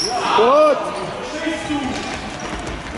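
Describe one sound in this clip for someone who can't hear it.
Young players shout in a large echoing hall.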